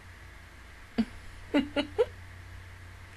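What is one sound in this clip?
A young woman laughs in short, muffled bursts close to a microphone.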